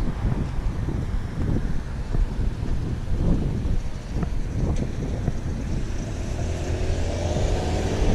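Cars drive past.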